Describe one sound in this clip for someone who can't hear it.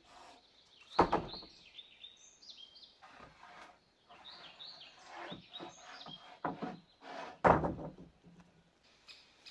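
Wooden boards knock and scrape against each other.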